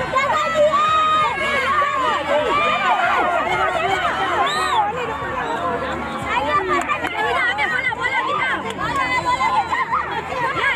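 A woman calls out instructions to children.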